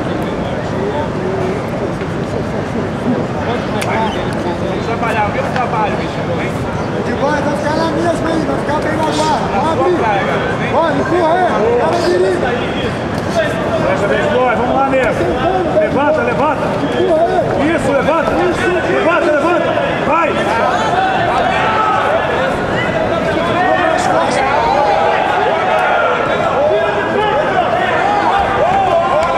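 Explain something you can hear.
A crowd shouts and cheers loudly in a large hall, growing louder.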